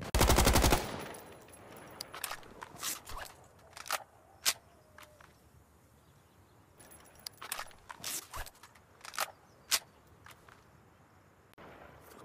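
A rifle's metal parts click and clatter as it is handled.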